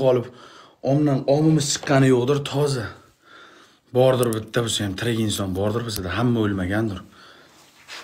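A man speaks loudly and with animation close to a phone microphone.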